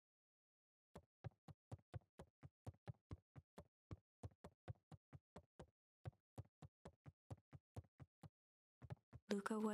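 Soft footsteps tap across a wooden floor.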